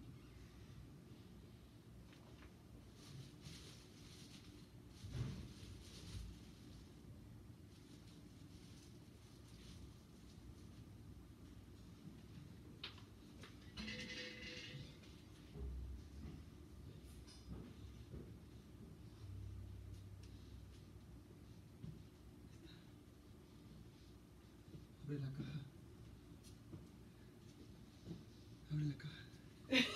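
Feet shuffle softly on a floor.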